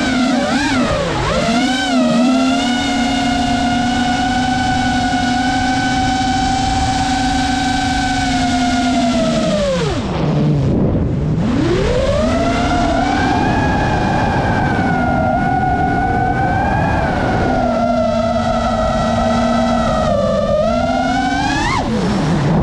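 The electric motors of a small FPV quadcopter whine, sinking sharply in pitch and then climbing again.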